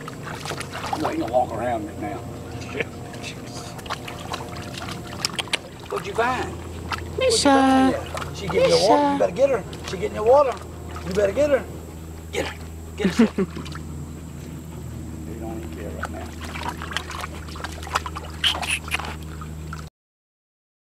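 Dogs splash and paddle in shallow water.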